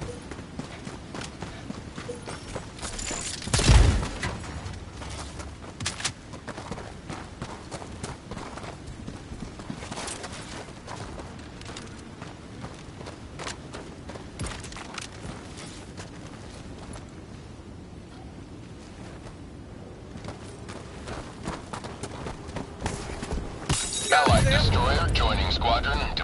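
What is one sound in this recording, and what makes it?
Footsteps crunch over rubble and dirt.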